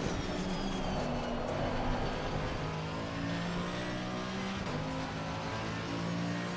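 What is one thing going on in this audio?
A racing car engine roars steadily, its pitch shifting as it changes gear.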